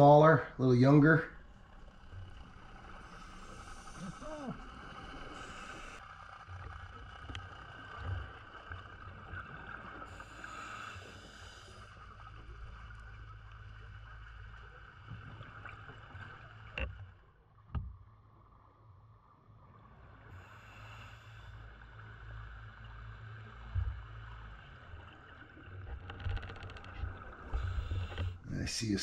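A low, muffled underwater rumble goes on steadily.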